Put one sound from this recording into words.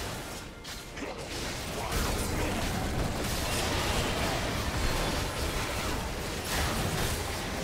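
Fantasy combat sound effects crackle, whoosh and clash in a busy game battle.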